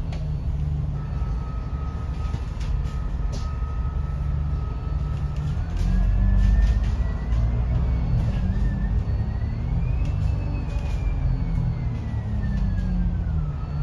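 A bus motor whines, rising and falling in pitch as the bus speeds up.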